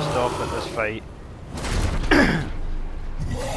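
A monster lets out shrill, wavering shrieks.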